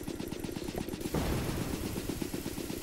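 A sudden electric blast bursts with a loud crack.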